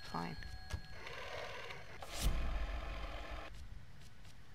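A rotary telephone dial whirrs and clicks as it turns back.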